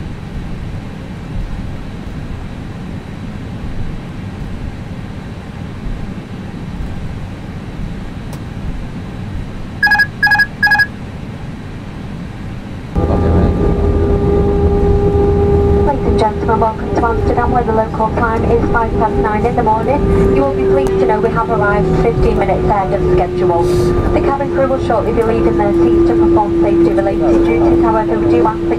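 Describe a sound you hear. The engines of a twin-engine jet airliner whine as it rolls along a runway.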